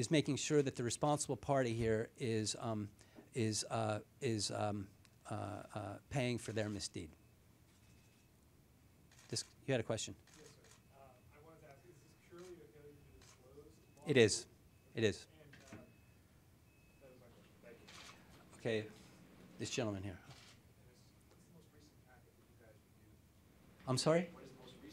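A middle-aged man speaks into a microphone with emphasis, in a room with a slight echo.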